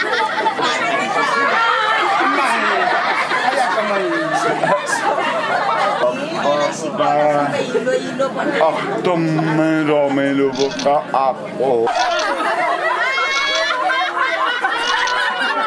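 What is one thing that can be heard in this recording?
A group of adults cheers and chatters outdoors.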